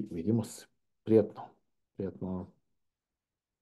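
A middle-aged man speaks briefly through an online call.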